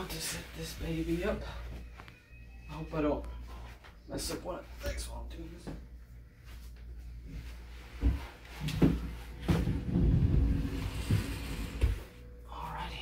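A futon mattress thumps and rustles as it is shifted.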